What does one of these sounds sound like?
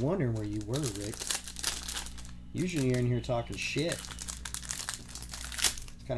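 A plastic wrapper crinkles as a pack is torn open.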